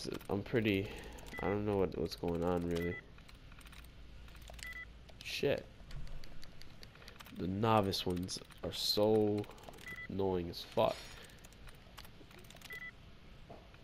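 A computer terminal gives short, soft beeps as keys are pressed.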